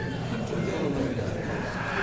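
A man laughs softly.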